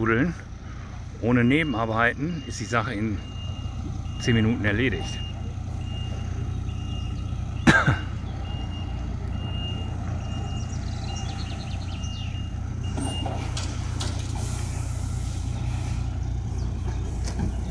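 A heavy truck engine rumbles steadily nearby.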